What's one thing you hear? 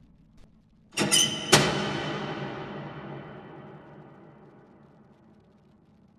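A metal locker door bangs shut and rings.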